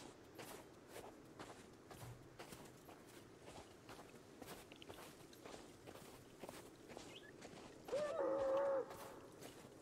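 Footsteps crunch steadily through snow.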